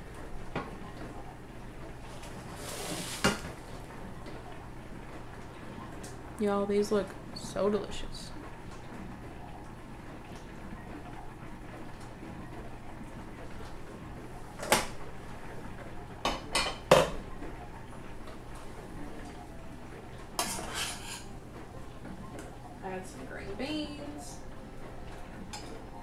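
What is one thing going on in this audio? Food sizzles softly in a pan.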